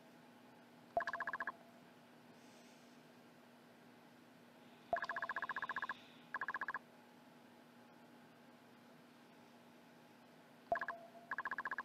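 A soft electronic chime sounds as each new line of dialogue begins.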